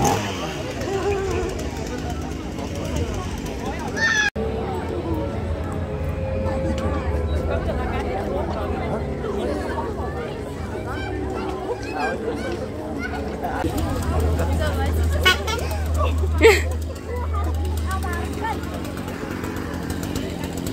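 A crowd of people chatters outdoors close by.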